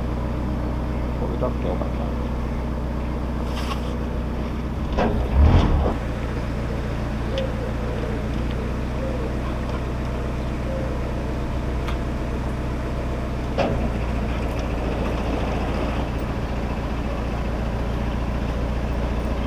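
A boat's engine chugs steadily at low speed.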